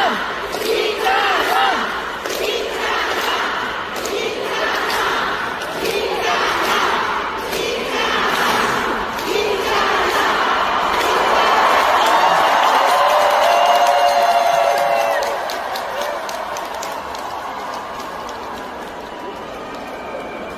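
A large crowd screams and cheers in a big echoing arena.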